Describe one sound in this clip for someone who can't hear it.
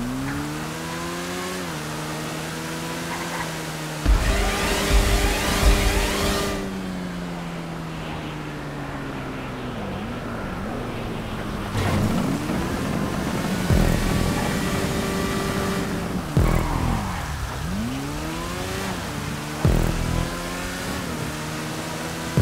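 A motorcycle engine revs and whines, rising and falling in pitch as the gears change.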